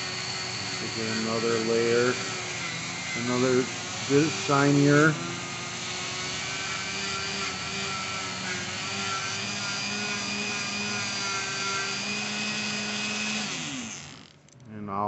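A small rotary grinder whines steadily, then spins down and stops.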